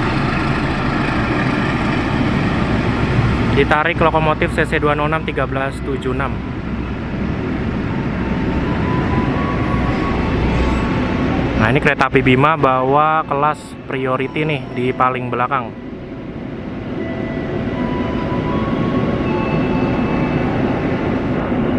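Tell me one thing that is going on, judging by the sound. A train rumbles steadily along the tracks nearby.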